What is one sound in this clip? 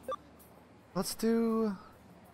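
A chime sounds as an item is selected.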